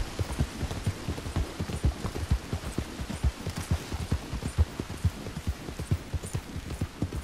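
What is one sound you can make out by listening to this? A horse's hooves thud in a quick, steady gallop.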